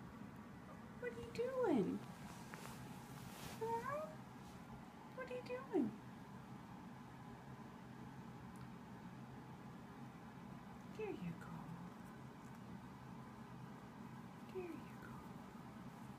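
A cat meows plaintively several times, close by.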